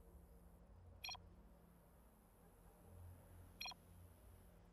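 A short electronic blip sounds twice.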